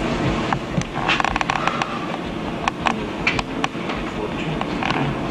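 Papers rustle and click close by.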